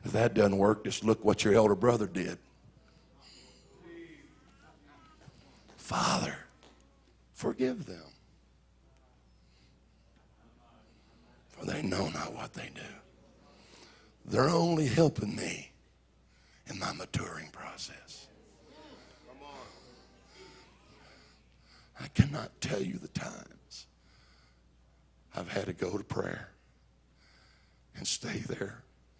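A middle-aged man speaks with animation through a microphone in a large hall, in bursts with pauses.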